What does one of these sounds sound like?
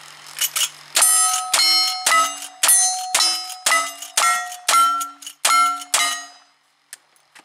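Steel targets clang and ring after being hit.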